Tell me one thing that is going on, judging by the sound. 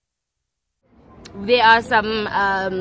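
A young woman laughs and talks close to the microphone.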